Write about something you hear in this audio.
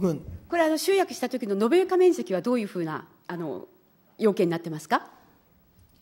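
A middle-aged woman speaks forcefully into a microphone.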